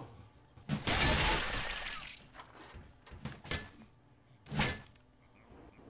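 An axe swings and strikes with heavy thuds.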